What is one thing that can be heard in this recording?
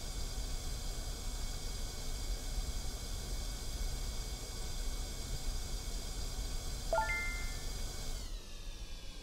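A steam cleaner hisses as it sprays onto a car seat.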